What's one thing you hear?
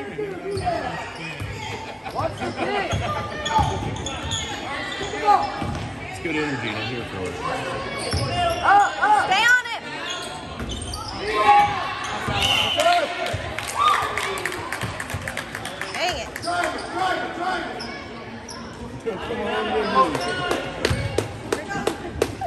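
Sneakers squeak on a wooden court.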